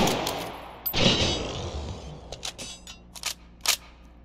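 A rifle's metal parts click and clack during a reload.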